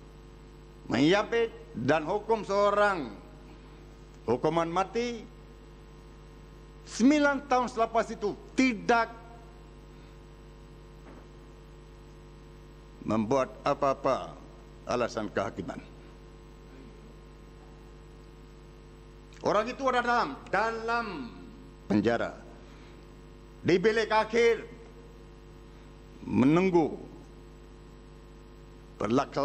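An elderly man speaks through a microphone in short bursts with pauses.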